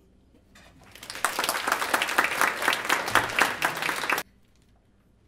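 A jazz band plays a loud, brassy phrase in a room and stops abruptly.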